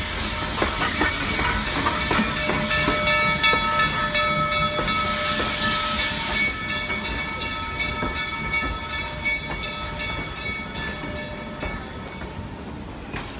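A steam locomotive hisses and whines steadily close by.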